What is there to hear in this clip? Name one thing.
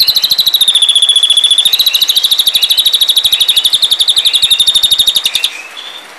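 A bird chatters rapidly with a harsh, fast, buzzing trill.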